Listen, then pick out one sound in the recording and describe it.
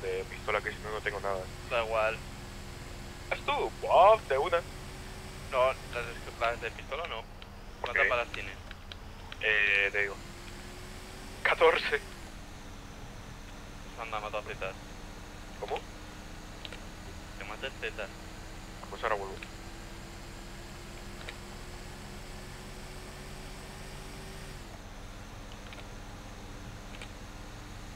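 A truck engine hums while cruising along a road.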